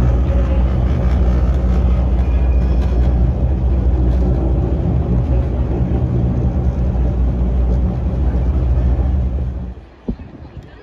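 A moving walkway hums and rumbles steadily.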